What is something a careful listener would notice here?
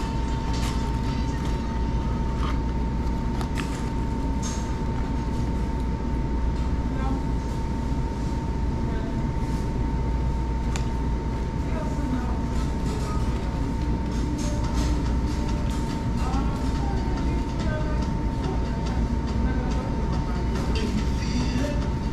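A man chews food with soft mouth noises.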